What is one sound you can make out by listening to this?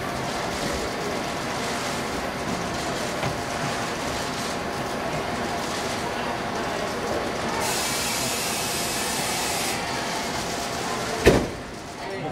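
A crowd of fans chatters and cheers.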